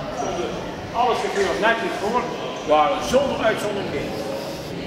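An elderly man speaks with animation to a group in an echoing hall.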